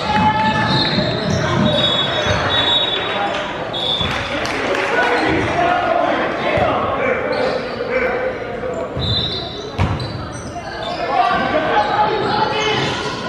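Young players call out and chatter in a large echoing gym.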